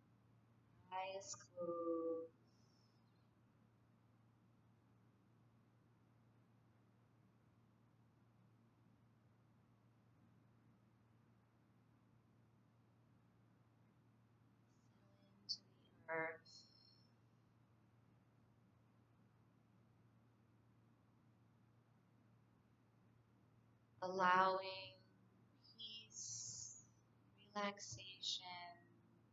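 A woman speaks calmly and softly, close by, with long pauses.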